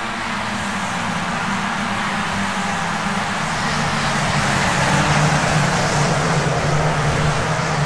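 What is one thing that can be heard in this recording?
A racing car engine drones steadily close by, rising slightly in pitch.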